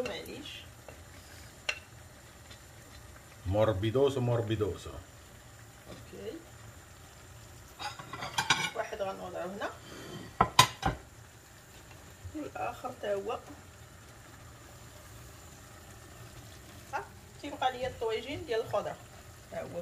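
A spatula clinks and scrapes against a pot and plates.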